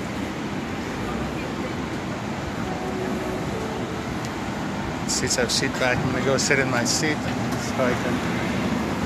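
A plane's engines drone steadily inside the cabin.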